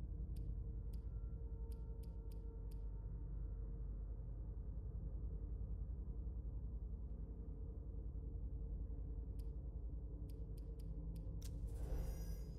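Short menu clicks tick several times.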